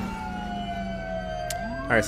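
A police siren wails, sweeping up and down.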